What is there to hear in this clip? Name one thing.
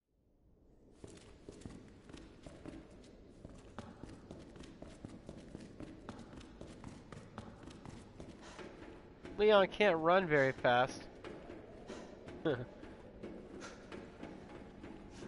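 Footsteps tap steadily on metal floors and stairs.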